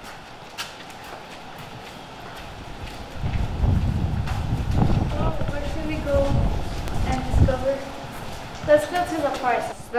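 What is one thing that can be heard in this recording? Footsteps shuffle on a concrete walkway.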